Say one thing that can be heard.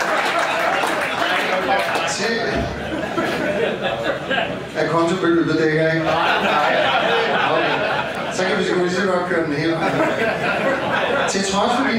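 A man laughs heartily close by.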